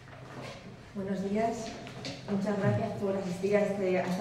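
A woman speaks calmly into a microphone.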